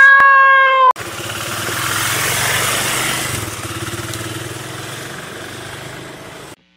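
A motorcycle engine revs and rumbles, slowly fading.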